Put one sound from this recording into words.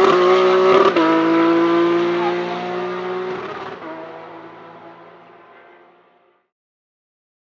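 A race car engine fades away into the distance.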